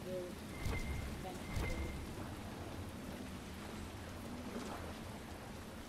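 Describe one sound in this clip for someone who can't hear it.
Water rushes steadily nearby.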